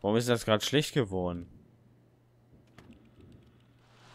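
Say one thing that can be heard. A refrigerator door opens.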